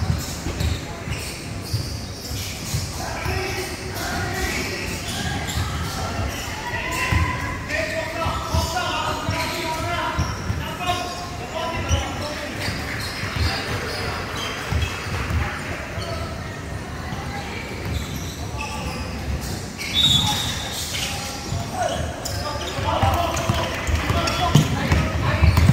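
Young men talk and call out across a large echoing hall.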